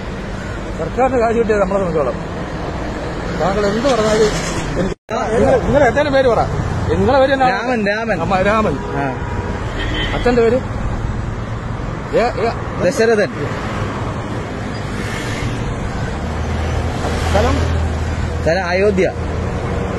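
A man speaks agitatedly, close by and muffled through a face mask.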